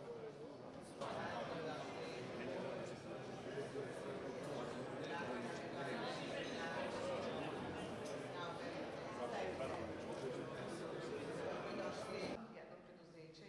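Several men and women chat and greet each other in a lively murmur, in a large echoing hall.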